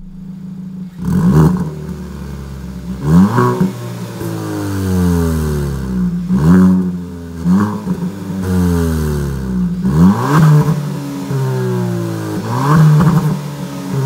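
A car exhaust roars as the engine revs up and down again and again.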